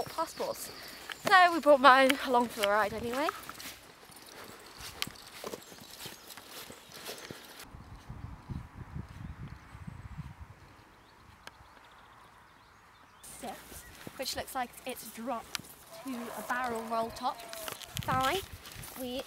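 A young woman speaks with animation close by, outdoors.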